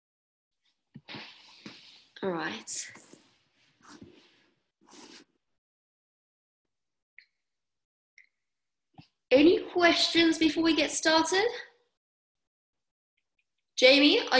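A young woman speaks calmly and close up over an online call, in short bursts with pauses.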